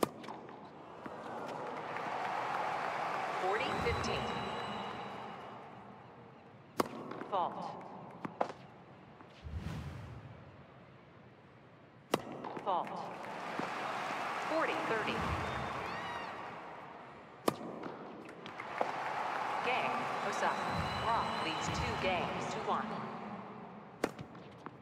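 A crowd cheers and applauds in a large arena.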